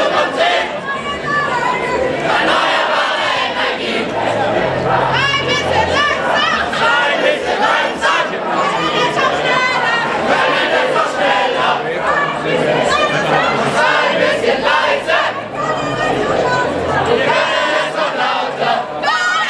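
A large crowd of marching people chatters and calls out outdoors.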